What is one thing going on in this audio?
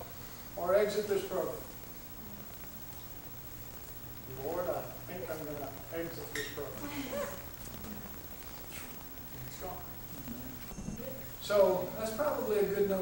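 A middle-aged man speaks into a microphone in a lecturing manner, with pauses.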